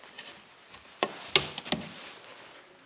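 A loose board panel knocks and thuds as it is pulled away.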